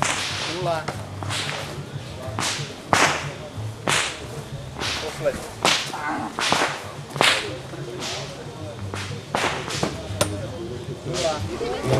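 Gunshots crack one after another.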